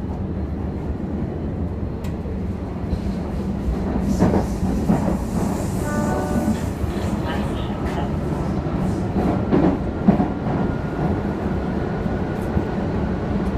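A subway train rumbles steadily along the track.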